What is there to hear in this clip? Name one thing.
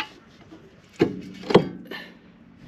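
Metal tools clink against each other.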